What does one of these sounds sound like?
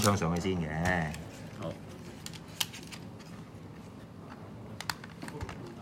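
Small plastic parts click and tap as a toy is handled.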